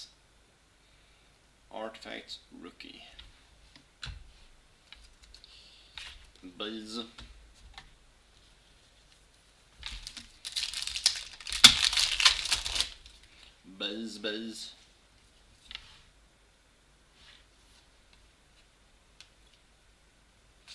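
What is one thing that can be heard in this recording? Cards rustle and slide against each other.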